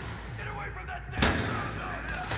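A gunshot bangs with a short echo.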